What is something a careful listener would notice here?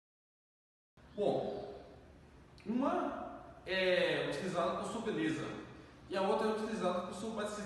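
A young man speaks calmly and clearly nearby.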